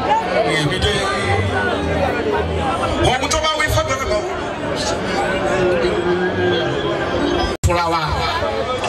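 A large crowd chatters and cheers loudly outdoors.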